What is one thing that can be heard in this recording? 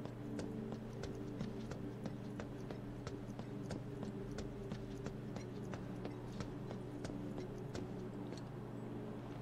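Quick footsteps run on hard pavement.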